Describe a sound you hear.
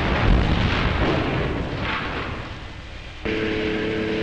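A large explosion roars and rumbles, then fades.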